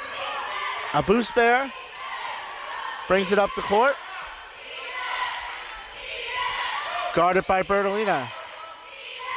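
Young women shout out on the court in a large echoing gym.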